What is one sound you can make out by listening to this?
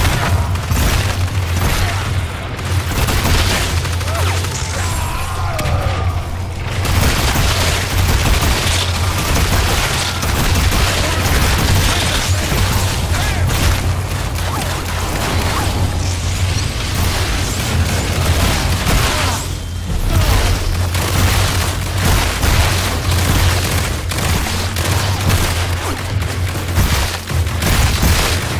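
An electric beam crackles and buzzes in rapid bursts.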